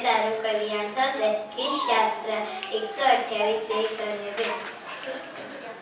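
A young girl sings into a microphone, heard through a loudspeaker.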